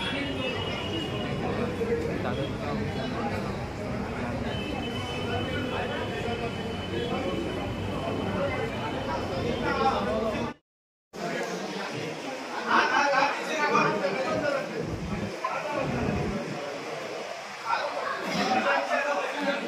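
A crowd of men murmurs and talks in a large echoing hall.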